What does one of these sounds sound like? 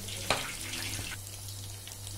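Hot oil sizzles and bubbles as food fries.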